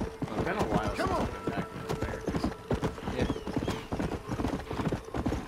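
A horse gallops, its hooves thudding rapidly on a dirt path.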